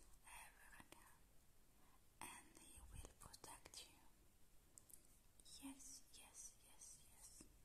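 Fingers tap and brush lightly close to the microphone.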